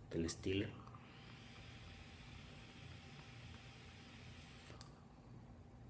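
A man draws on an electronic cigarette with a soft, steady sizzle.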